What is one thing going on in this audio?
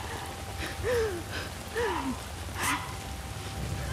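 A young woman gasps and cries out in pain close by.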